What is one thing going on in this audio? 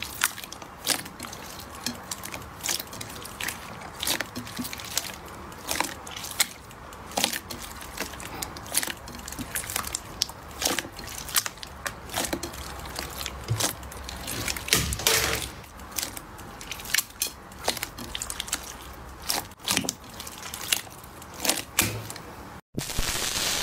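Wet slime squelches and pops as hands squeeze and stretch it.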